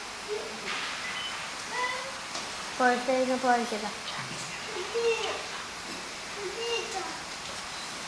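A young woman speaks and sings in short phrases nearby.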